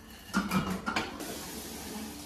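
Dishes clink against each other in a sink.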